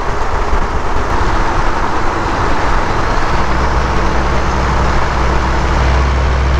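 Tyres roar on pavement, echoing inside a tunnel.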